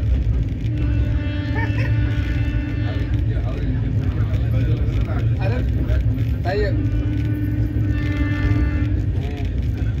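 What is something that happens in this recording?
Train wheels squeal in long high tones.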